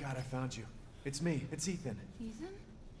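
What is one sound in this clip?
A young woman answers weakly, in a dazed voice.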